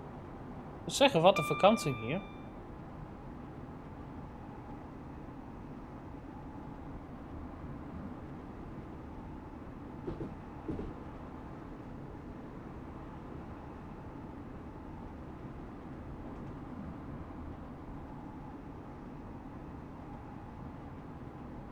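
A train engine hums and wheels rumble steadily on the rails.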